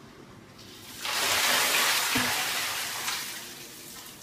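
Water pours from a bowl and splashes down on a woman.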